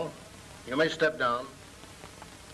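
A man speaks calmly, heard through an old, hissy recording.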